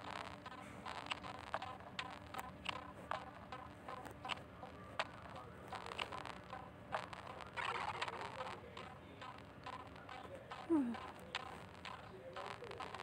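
Short electronic clicks sound again and again.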